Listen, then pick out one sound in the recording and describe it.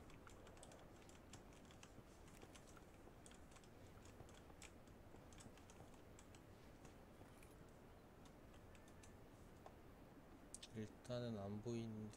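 Soft crouched footsteps tap on a tiled floor.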